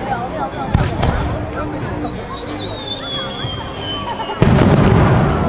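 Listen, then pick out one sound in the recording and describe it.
A firework rocket whistles as it climbs.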